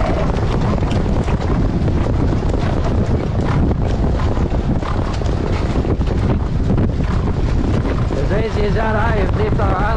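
Hooves pound rapidly on a dirt track.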